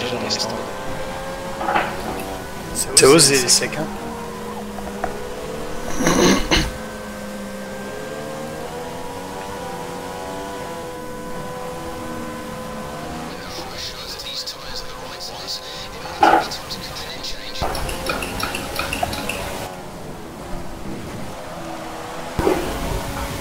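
Racing car engines whine steadily, shifting pitch as the cars speed up and slow down.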